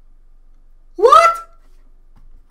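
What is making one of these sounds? A young man lets out a loud exclaiming cry.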